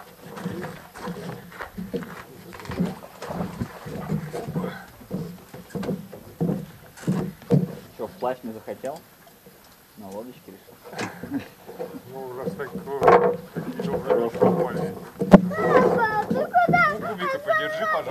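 A man talks casually nearby outdoors.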